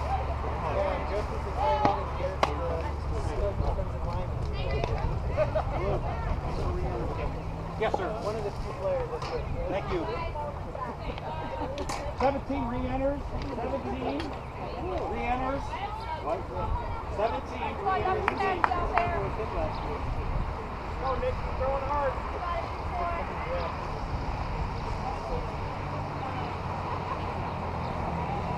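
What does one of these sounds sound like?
Young women call out and chatter across an open field.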